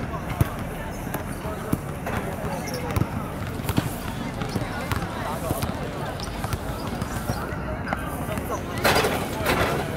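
Brooms sweep on a paved court.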